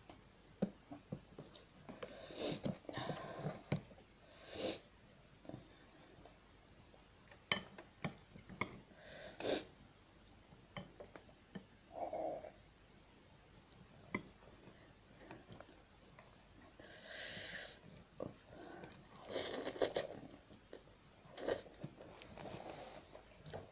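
Chopsticks click against a bowl.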